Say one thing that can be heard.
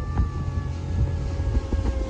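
An outboard motor drones.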